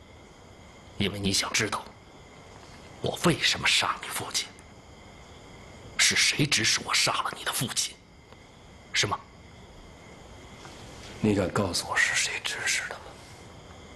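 A middle-aged man speaks in a low, menacing voice close by.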